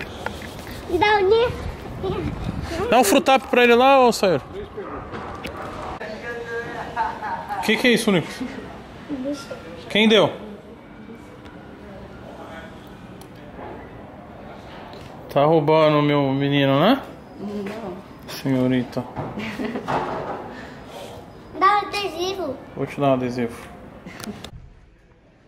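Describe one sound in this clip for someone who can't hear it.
A young boy talks and exclaims excitedly close by.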